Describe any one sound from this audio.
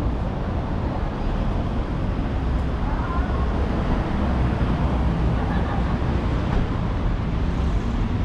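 Wind blusters steadily outdoors.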